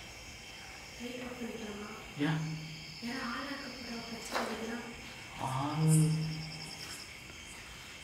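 A young woman speaks close by in a bare, echoing room.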